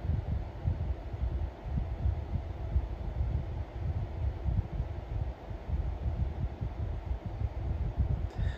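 A young woman gasps and breathes heavily, muffled behind her hand.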